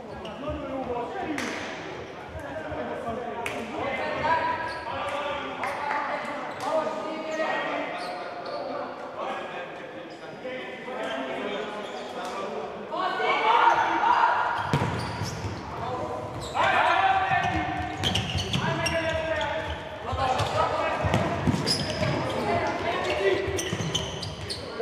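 A ball is kicked with sharp thuds on a hard indoor court.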